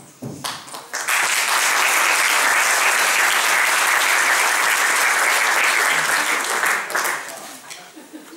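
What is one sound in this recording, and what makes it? An audience applauds loudly in an echoing hall.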